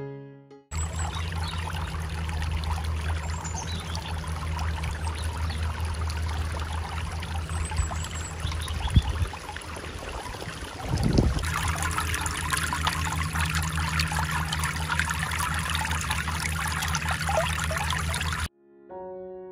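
Water trickles and splashes steadily into a pool.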